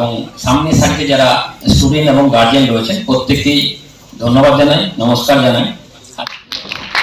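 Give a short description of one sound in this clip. A man speaks forcefully into a microphone in a large hall.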